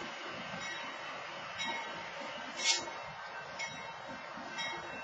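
A freight train rumbles past steadily.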